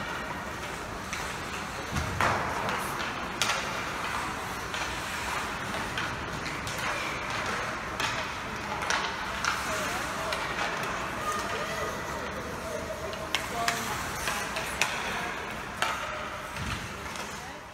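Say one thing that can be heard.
The sound echoes around a large indoor rink.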